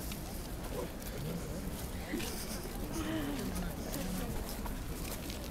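A young woman speaks close by.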